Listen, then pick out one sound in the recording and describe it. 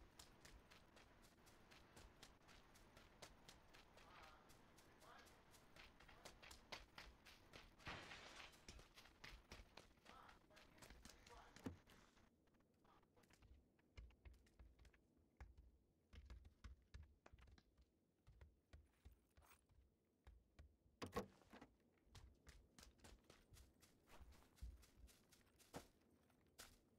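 Footsteps run quickly over grass and wooden floors.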